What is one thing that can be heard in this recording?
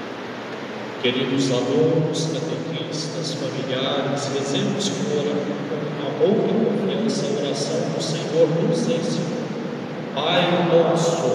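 A large congregation sings together in a big echoing hall.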